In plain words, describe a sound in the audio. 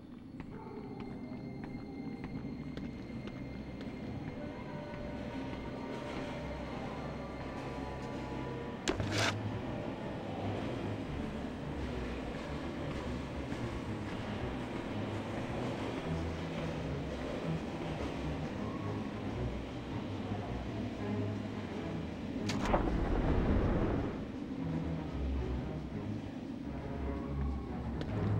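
Footsteps fall on a hard stone floor.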